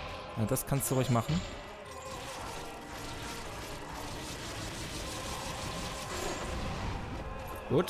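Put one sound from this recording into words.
Blows and clashes sound as a warrior fights a huge monster.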